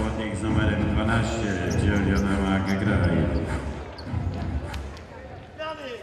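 A large crowd chants and sings loudly in an echoing hall.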